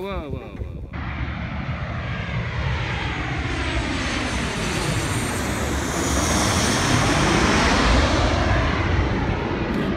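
A jet airliner roars loudly overhead, its roar rising and sweeping past.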